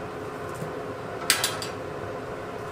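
A woven mat knocks against hanging pans as it is lifted off a hook.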